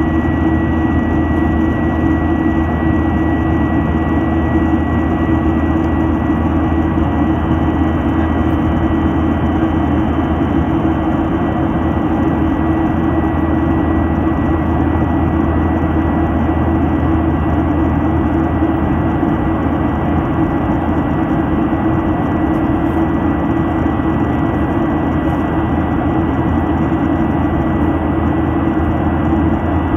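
A jet engine roars steadily in flight, heard from inside the cabin.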